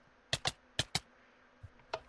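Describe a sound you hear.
A button clicks a few times.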